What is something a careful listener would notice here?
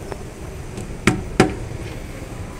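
A hand knocks on escalator steps.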